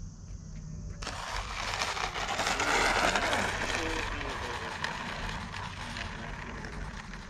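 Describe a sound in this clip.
A small model plane's engine whines loudly as it speeds past close by and fades away.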